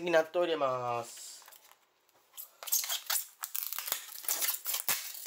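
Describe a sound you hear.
A thin plastic food tray crinkles as hands handle it.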